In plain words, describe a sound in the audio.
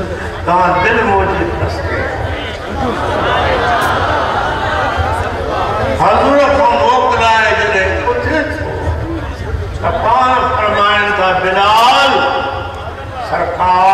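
An elderly man preaches with fervour, chanting and drawing out his words through a loudspeaker.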